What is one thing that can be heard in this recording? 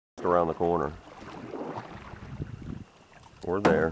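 A paddle splashes and dips in the water.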